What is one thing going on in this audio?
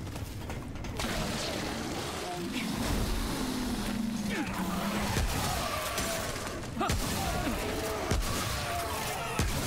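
Blows and scuffling noises ring out in a fight.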